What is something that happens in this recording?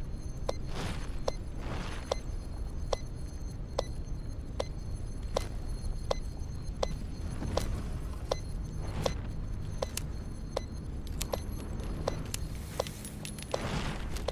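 Footsteps tread steadily through dry grass.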